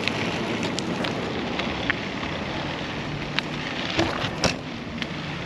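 Tyres roll over rough tarmac.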